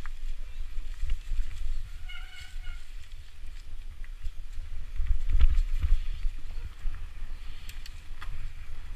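Wind rumbles over a moving bike.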